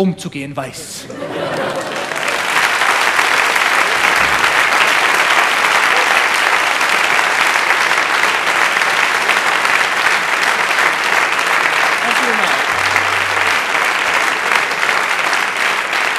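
A large audience claps loudly and steadily.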